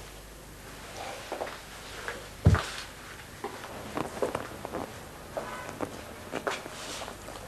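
Footsteps thud on the floor as a man walks away.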